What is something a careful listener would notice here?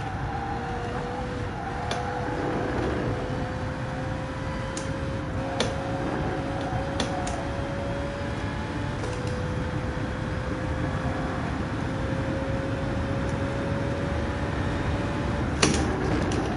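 A racing car engine roars and its pitch climbs steadily through the gears.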